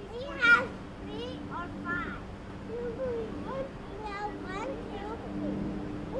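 Young children chatter and call out excitedly nearby.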